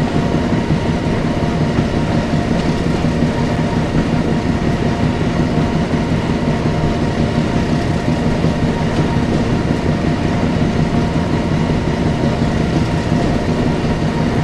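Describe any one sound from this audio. A diesel locomotive engine rumbles and hums steadily.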